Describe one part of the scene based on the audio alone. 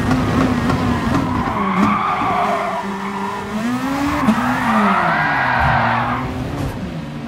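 Other race cars roar past nearby.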